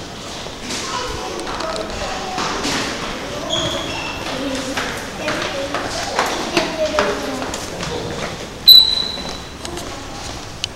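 Children and adults talk at a distance in an echoing corridor.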